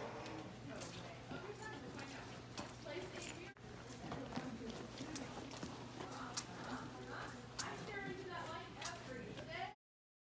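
Footsteps squeak on a hard floor.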